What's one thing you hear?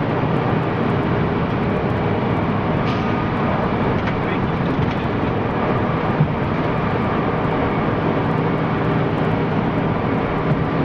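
A heavy vehicle's engine rumbles loudly from inside the cab as it drives along.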